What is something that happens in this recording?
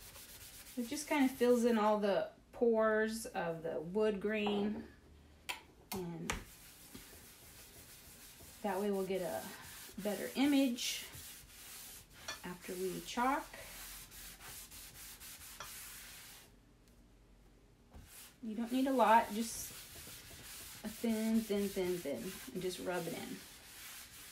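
A cloth rubs softly across a board.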